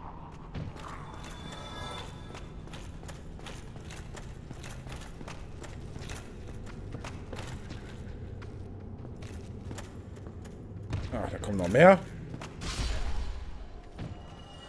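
Swords clash with a metallic ring.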